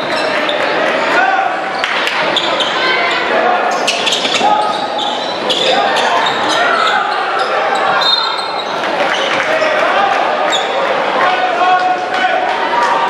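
A crowd murmurs and chatters in the stands.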